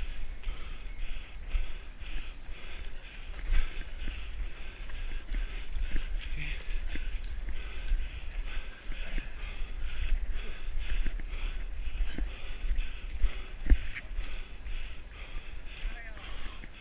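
Footsteps crunch quickly over dry leaves and dirt.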